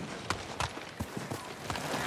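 A horse's hooves clop on stone.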